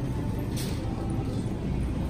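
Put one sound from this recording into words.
A shopping cart rattles across a hard floor.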